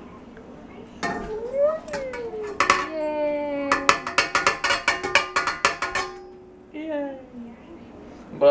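A young child babbles and talks excitedly close by.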